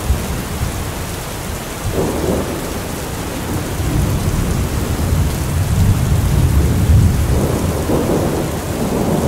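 Heavy rain pours steadily onto a metal roof.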